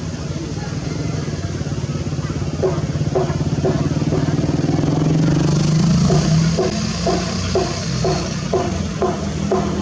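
An excavator's diesel engine rumbles steadily and rises in pitch.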